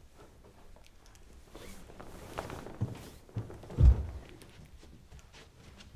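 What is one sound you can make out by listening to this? Bedding rustles as a person shifts and gets up.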